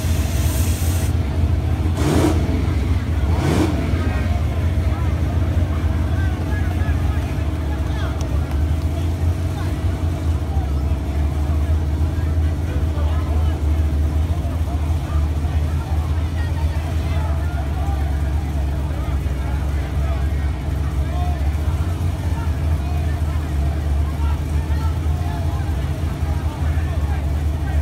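Powerful race car engines idle with a deep, loud rumble outdoors.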